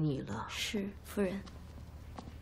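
A young woman answers softly, close by.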